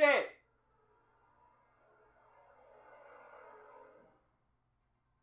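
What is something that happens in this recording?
A young man hums softly with his mouth closed.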